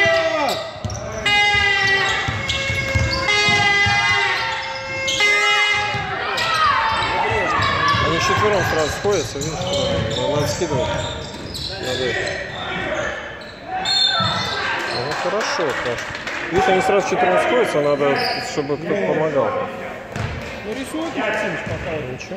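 A crowd of spectators nearby shouts and cheers loudly.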